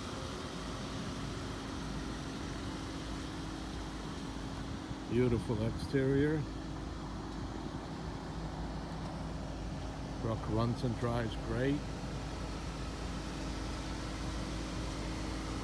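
A compact SUV's turbocharged four-cylinder petrol engine idles.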